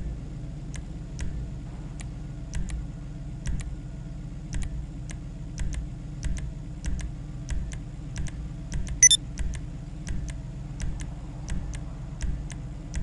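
Short soft clicks tick again and again as a menu is scrolled.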